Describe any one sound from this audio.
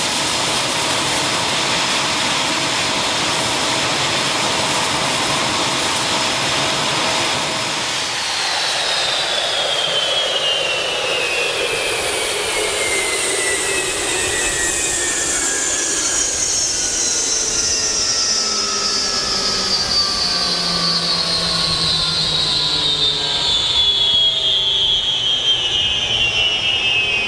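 A jet engine whines and roars loudly close by, then slowly winds down in pitch.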